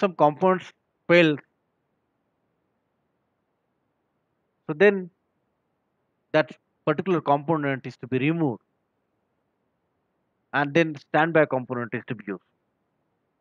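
A man explains calmly, close to the microphone, with pauses.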